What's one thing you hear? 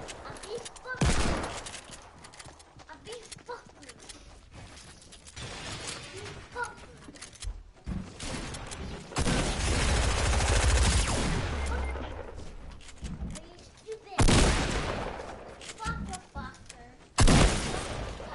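A shotgun fires loud, sharp blasts.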